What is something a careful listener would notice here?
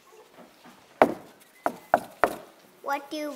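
A child knocks on a wooden door.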